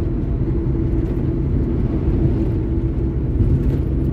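An oncoming truck rushes past.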